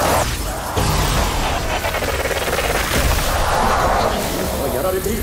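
Magic energy blasts crackle and burst loudly.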